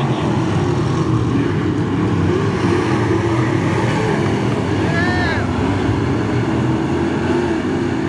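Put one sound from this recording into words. Engines rev up and down as cars pass close by.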